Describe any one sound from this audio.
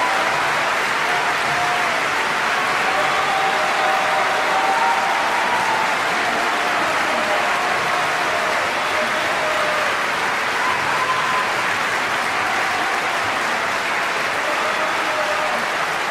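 An elderly man sings softly with a long, held voice.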